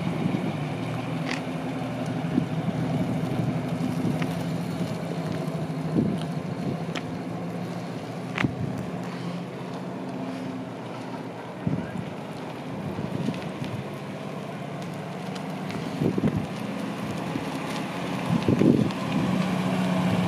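An old car's engine rumbles low and steady as the car drives slowly around outdoors.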